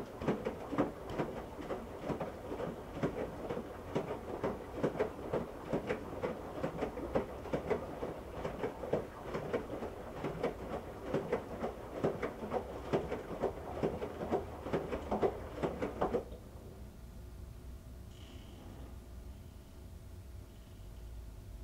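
A washing machine hums with a low steady drone.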